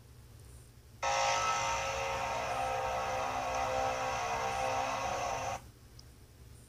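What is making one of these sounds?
A toy robot plays a loud, steady electronic hum.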